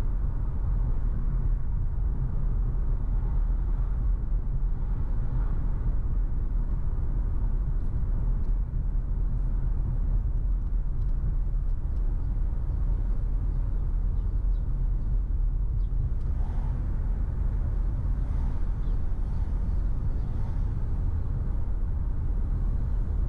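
A car engine hums steadily with road rumble from inside a moving car.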